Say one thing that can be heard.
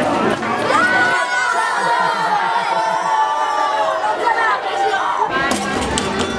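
A crowd of children and young people sing and cheer loudly together.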